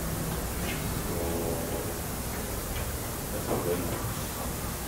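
A gorilla grunts softly during a scuffle.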